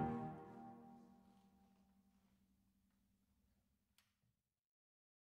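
A piano's last chord rings out and slowly fades away in a reverberant room.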